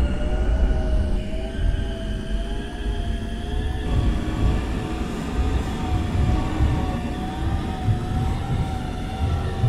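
An electric train's motors whine with a wavering hum as the train travels.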